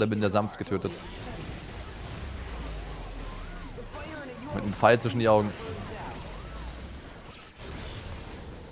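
Video game spells whoosh and chime.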